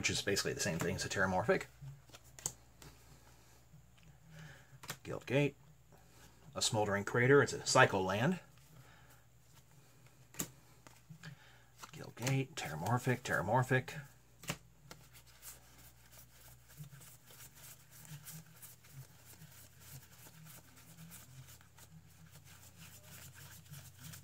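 Playing cards flick and rustle softly as they are sorted by hand.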